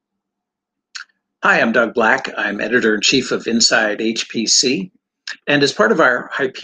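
A middle-aged man speaks calmly into a microphone, as if on an online call.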